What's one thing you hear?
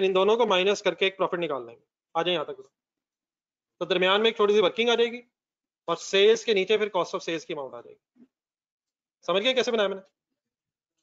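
A man speaks calmly and explains into a close microphone, with pauses.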